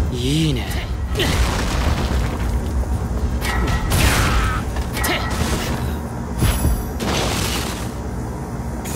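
Blades whoosh and slash in rapid bursts.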